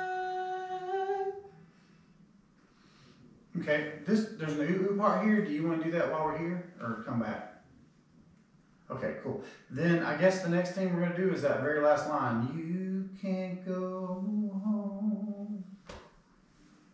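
A woman sings into a close microphone.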